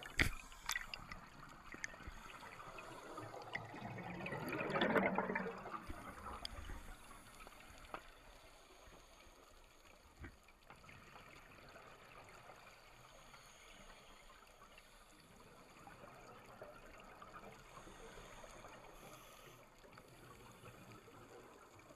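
A diver breathes through a regulator with a low rasping hiss.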